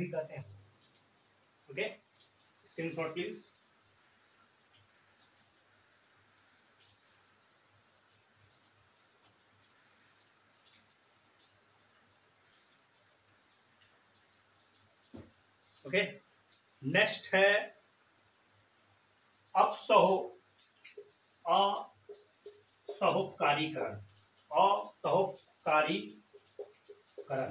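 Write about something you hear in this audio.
A man speaks calmly nearby, in short bursts with pauses.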